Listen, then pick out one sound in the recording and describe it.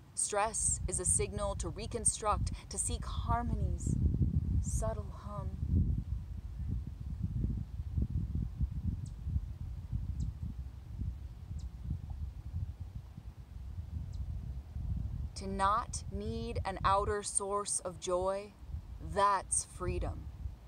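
A young woman speaks calmly and softly close by.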